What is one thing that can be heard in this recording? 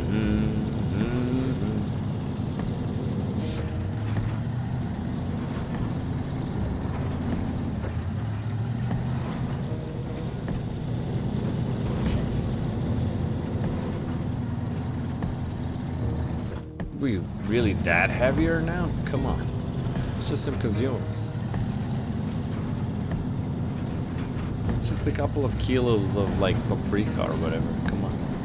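A truck engine rumbles low and steady as it drives along a rough track.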